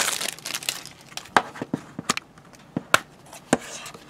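A plastic case snaps open with a click.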